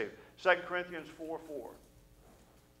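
A middle-aged man speaks with feeling through a microphone in a large room.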